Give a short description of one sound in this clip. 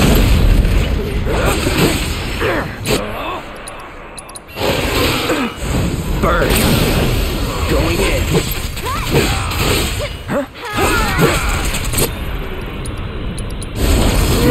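Swords clash and slash with sharp metallic hits.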